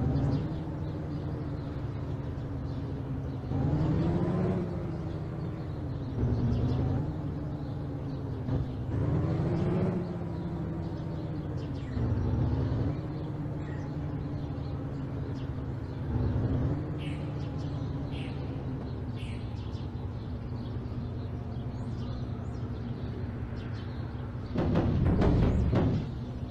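A truck engine hums and revs steadily.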